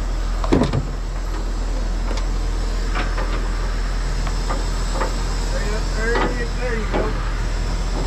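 Metal clanks sharply a few times.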